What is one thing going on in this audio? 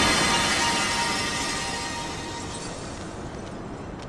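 A magical shimmering chime rings out and slowly fades.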